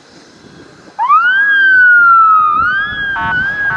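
A siren wails loudly close by, rising and falling.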